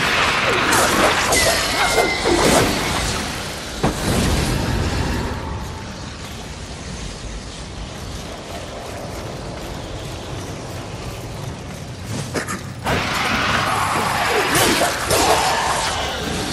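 A whip lashes and cracks in combat.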